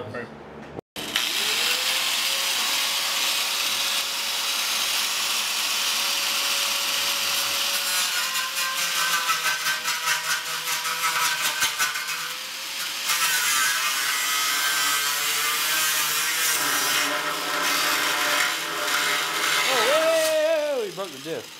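An angle grinder whines loudly and grinds against metal.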